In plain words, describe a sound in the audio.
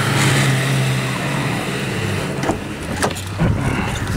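An off-road vehicle engine roars and strains through mud.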